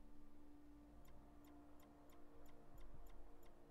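Menu selections click softly, one after another.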